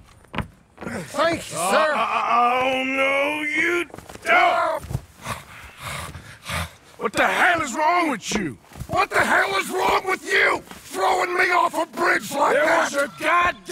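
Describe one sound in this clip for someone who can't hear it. A man speaks sharply and shouts angrily.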